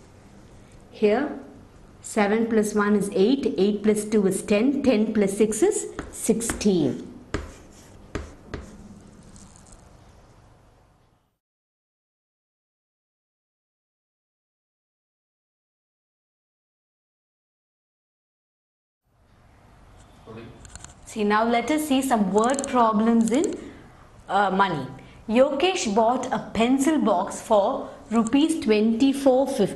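A woman speaks calmly and clearly, close by, like a teacher explaining.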